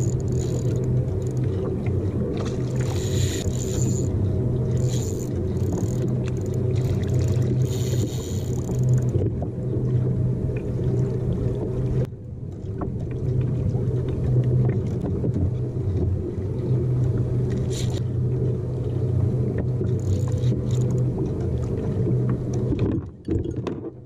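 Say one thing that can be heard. A fishing reel clicks as a line is wound in.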